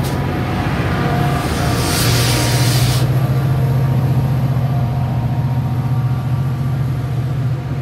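A diesel locomotive engine roars as it passes.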